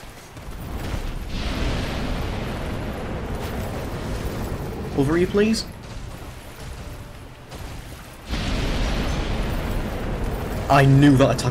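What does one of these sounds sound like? Lightning magic crackles and roars in bursts.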